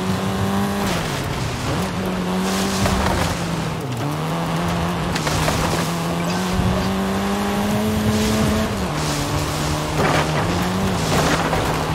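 Branches and bushes crash and scrape against a car.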